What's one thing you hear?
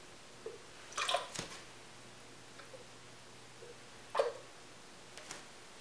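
A blender jar clatters and clicks onto its base.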